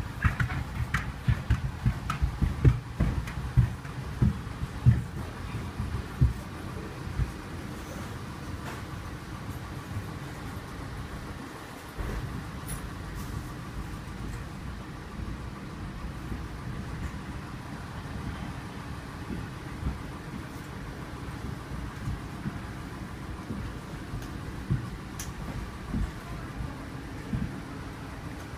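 Clothing and a backpack rustle close by.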